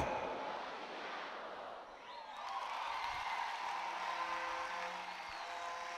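Women in a crowd cheer and shout.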